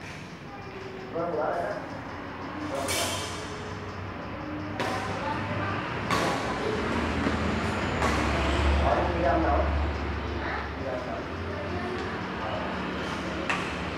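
A racket smacks a shuttlecock back and forth in an echoing hall.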